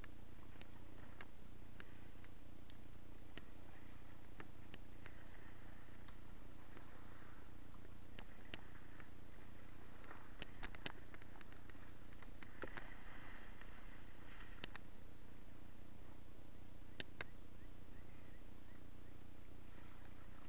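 Water ripples and gurgles around a small boat.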